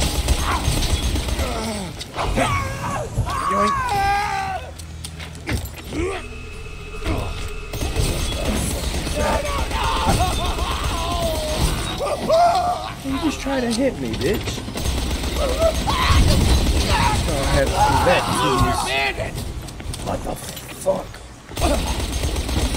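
Gunfire blasts rapidly in bursts.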